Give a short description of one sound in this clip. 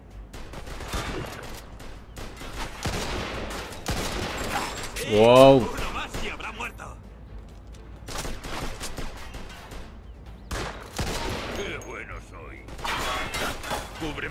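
Gunshots ring out in bursts.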